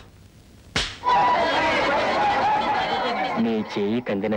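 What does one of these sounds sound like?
A crowd of men laughs loudly.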